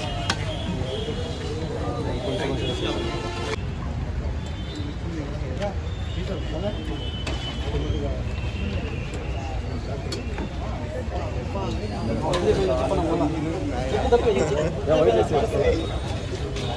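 Metal ladles scrape and clink against large pots.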